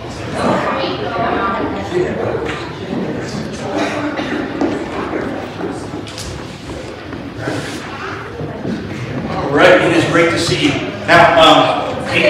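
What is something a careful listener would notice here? Small feet patter across a wooden floor.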